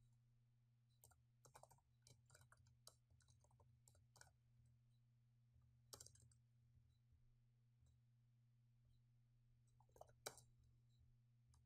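A man speaks quietly close to a microphone.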